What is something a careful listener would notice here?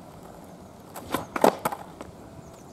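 A skateboard clacks and knocks as its rider turns it around.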